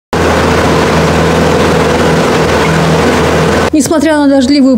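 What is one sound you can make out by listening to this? A boat's motor hums steadily.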